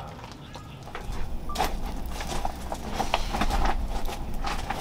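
A campfire roars with low rumbling flames.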